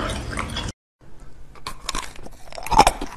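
A young woman bites and crunches ice cubes close to a microphone.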